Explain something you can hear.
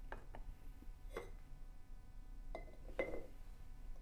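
A glass jar clinks down onto a wooden holder.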